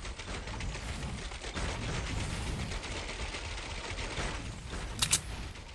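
Building pieces snap into place with quick clicks.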